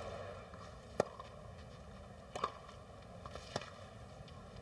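Tennis balls are struck sharply with rackets, back and forth.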